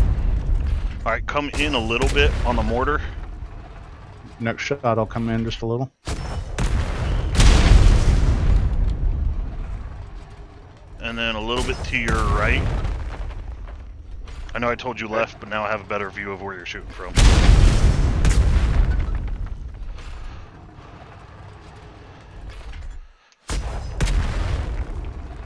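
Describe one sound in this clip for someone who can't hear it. A loud blast booms and rumbles.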